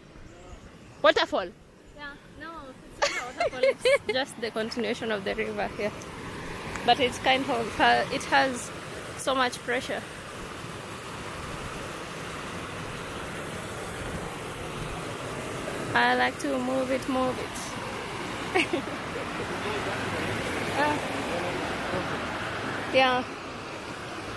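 A young woman talks casually close by.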